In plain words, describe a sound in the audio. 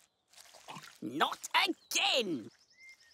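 A small cartoon creature chirps in a high, squeaky voice.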